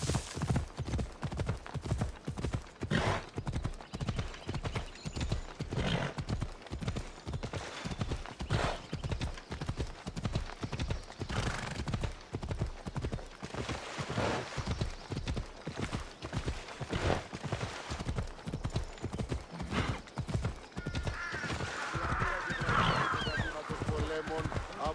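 Horse hooves thud steadily on a dirt path at a gallop.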